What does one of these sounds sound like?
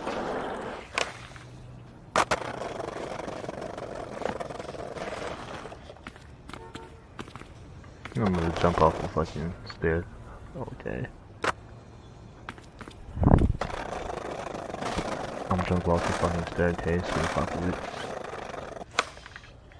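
A skateboard clacks sharply as it lands.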